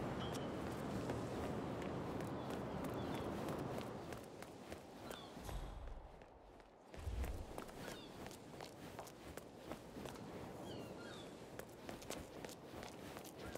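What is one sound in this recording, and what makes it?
Footsteps tap quickly on stone steps and paving.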